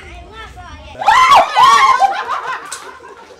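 A young woman screams loudly in fright.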